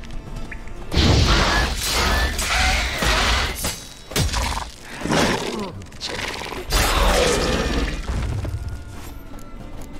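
A monster roars and snarls during a fight.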